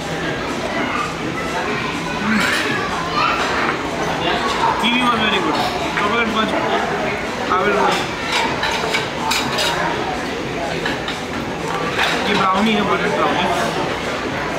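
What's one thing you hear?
Cutlery clinks and scrapes on a plate.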